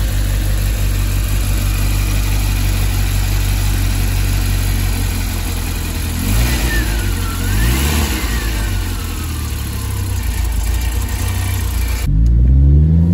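An engine idles with a steady, rough rumble close by.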